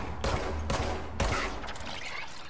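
A pistol fires several quick, sharp shots.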